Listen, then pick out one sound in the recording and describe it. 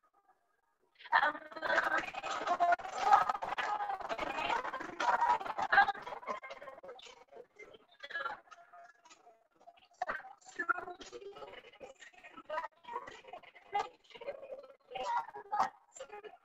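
A woman sings along softly over an online call.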